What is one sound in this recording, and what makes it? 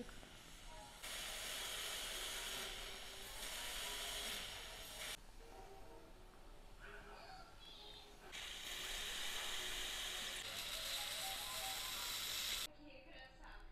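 A dental drill whirs steadily.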